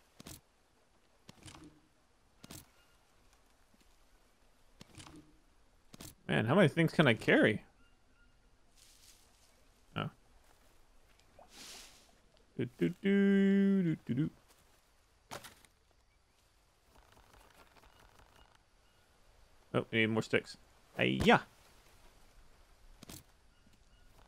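Dry sticks clatter and rustle as they are picked up and dropped.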